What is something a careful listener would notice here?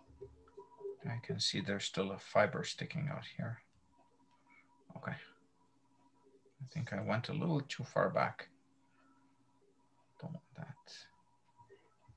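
A man speaks calmly through an online call, in short bursts.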